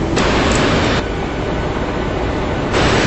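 A jet engine roars loudly from outside as an airliner climbs away.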